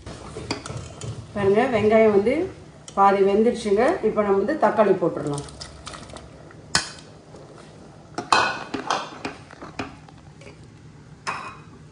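A metal ladle clinks against a pot.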